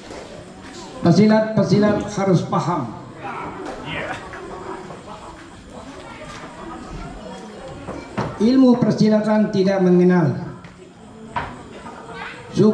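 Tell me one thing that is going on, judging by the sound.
An elderly man chants in a drawn-out voice through a microphone and loudspeaker.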